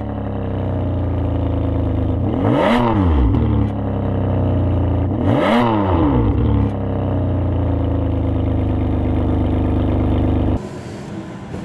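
A car engine idles with a deep rumble through its exhausts.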